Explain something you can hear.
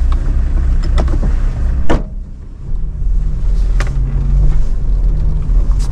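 An older man talks from the back seat.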